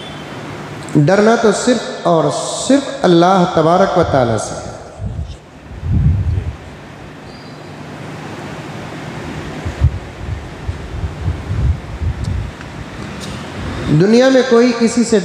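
An elderly man chants in a drawn-out, melodic voice through a microphone, in short bursts.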